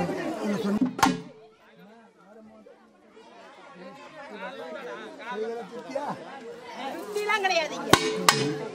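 A hand drum is struck sharply.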